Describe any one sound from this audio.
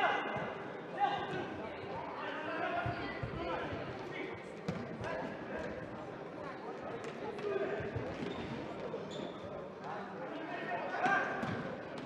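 A ball is kicked with sharp thuds in a large echoing hall.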